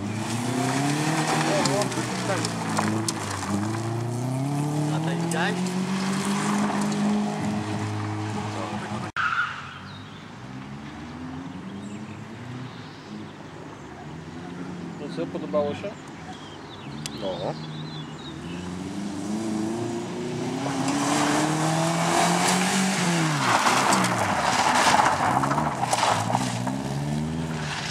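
A rally car engine roars and revs hard as the car races past.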